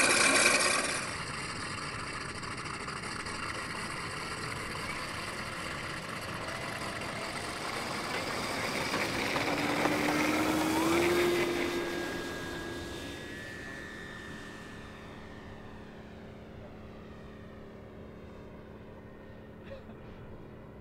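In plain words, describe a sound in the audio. A small propeller engine buzzes loudly as a model plane takes off, then fades as it flies away.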